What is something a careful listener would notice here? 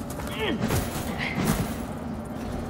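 A heavy landing thuds onto a stone floor.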